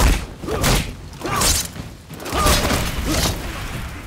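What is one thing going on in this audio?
A fiery blast bursts loudly.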